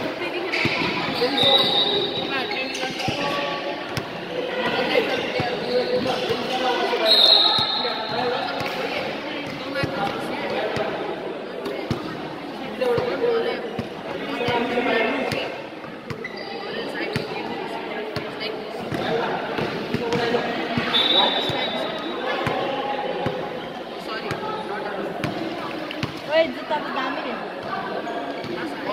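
Young women players call out across the court.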